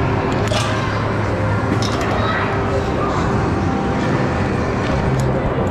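Arcade games chime and play music all around in a large echoing hall.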